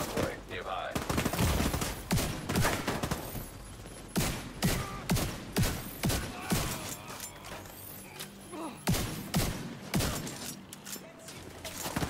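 Gunfire rings out in quick, sharp bursts.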